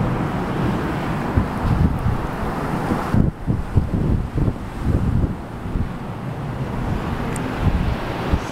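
Wind gusts and rumbles loudly outdoors.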